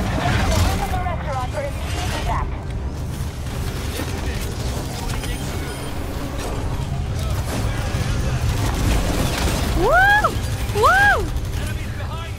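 Rumbling game sound effects play throughout.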